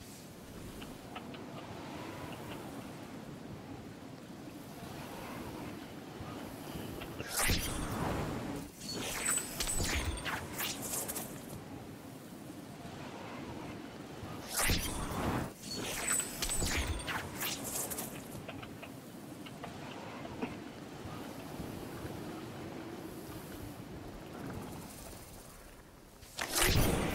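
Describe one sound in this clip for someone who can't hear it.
Wind rushes steadily past a glider in flight.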